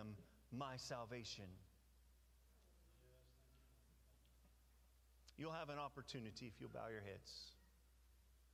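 A man speaks calmly into a microphone in a large room, pausing between phrases.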